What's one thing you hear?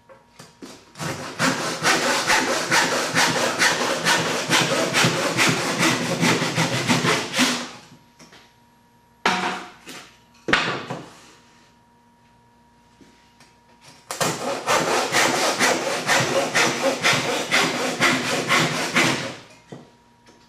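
A hand saw cuts quickly through wood in rapid strokes.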